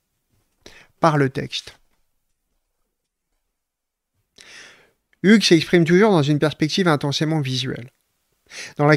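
A man reads aloud calmly, close to a microphone.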